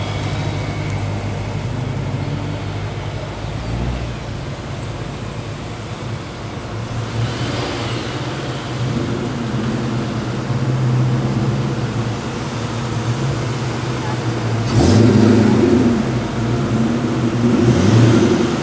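Several car engines idle and rev as cars drive by in a line.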